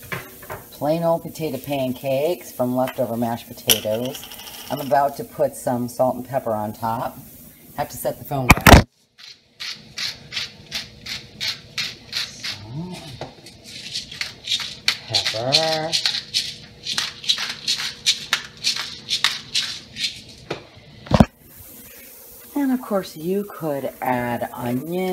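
Potato pancakes sizzle as they fry in butter in a griddle pan.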